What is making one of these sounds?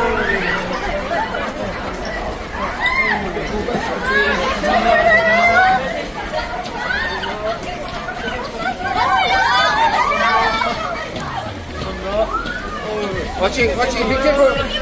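A crowd of men and women chatter and call out excitedly nearby.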